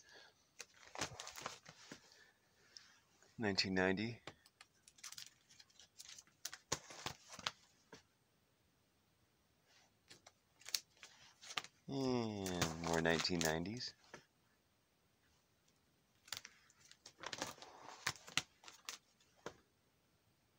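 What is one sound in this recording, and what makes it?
Plastic binder sleeves crinkle and flap as pages are turned.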